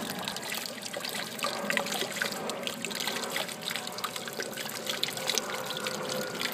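Water pours steadily from a spillway and splashes into a pool.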